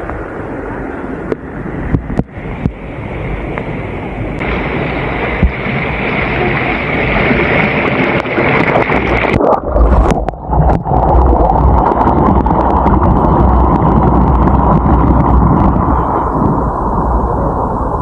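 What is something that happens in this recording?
Water pours over a small weir and splashes into a pool.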